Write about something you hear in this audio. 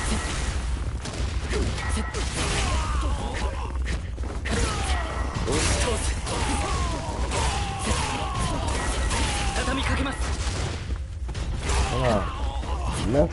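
A blade slashes and hits with wet, sharp impacts.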